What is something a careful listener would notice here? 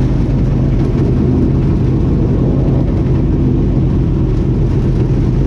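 A race car engine roars loudly and steadily up close.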